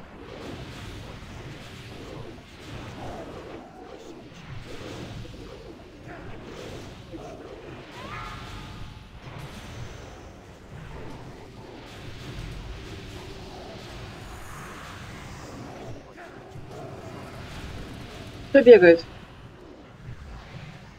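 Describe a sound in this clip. Magic spells crackle and whoosh amid the clash of a fantasy battle.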